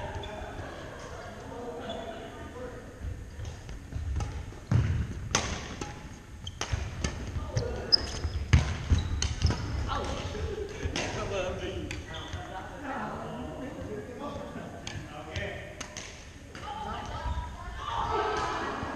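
Shuttlecocks are struck with rackets, echoing in a large hall.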